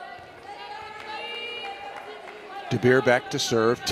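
Young women cheer and shout excitedly nearby.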